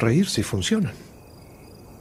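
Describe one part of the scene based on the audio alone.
An older man speaks quietly and close by.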